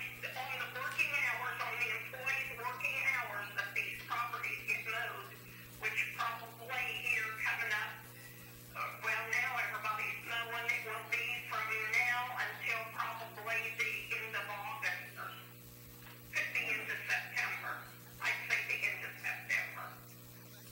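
A man speaks calmly at a distance.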